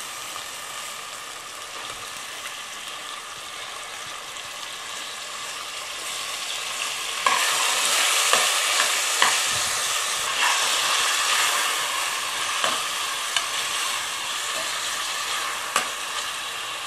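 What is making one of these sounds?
A spoon scrapes and knocks against a metal pot.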